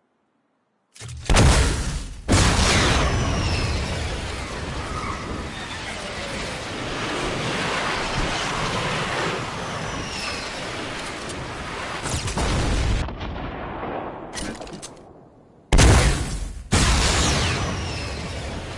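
A loud rushing whoosh of wind roars.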